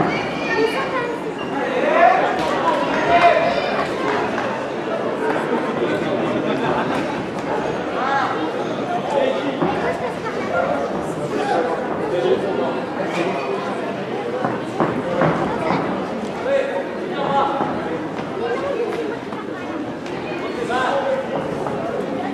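Gloves and kicks thud against bodies in quick bursts.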